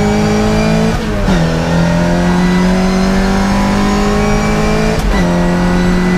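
A racing car's engine drops in pitch with each gear change.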